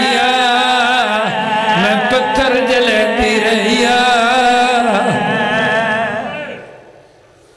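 A man chants loudly into a microphone with a strong echo.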